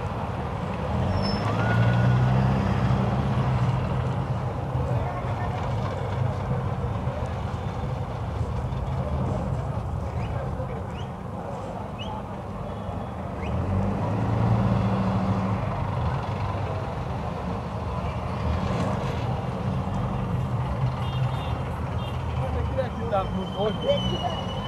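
A car engine hums steadily from inside a slowly moving car.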